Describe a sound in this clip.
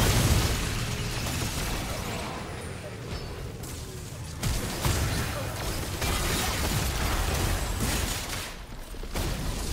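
Spell effects whoosh and crackle in a game battle.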